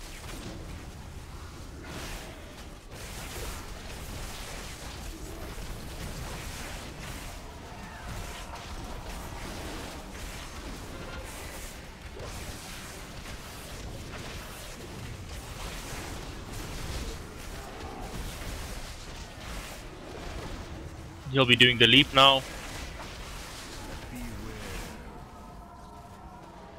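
Magic spells crackle and burst during a fight.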